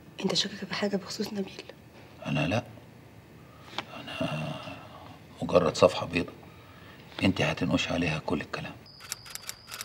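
A middle-aged man speaks calmly and seriously nearby.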